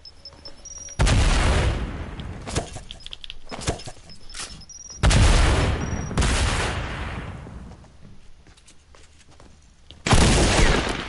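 Loud gunshots blast in bursts, close by.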